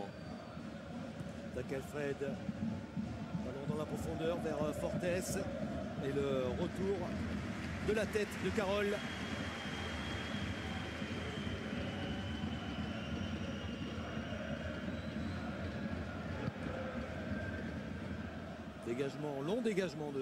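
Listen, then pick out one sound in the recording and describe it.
A large stadium crowd chants and cheers steadily.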